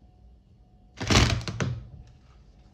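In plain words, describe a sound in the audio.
A watermelon cracks and splits open.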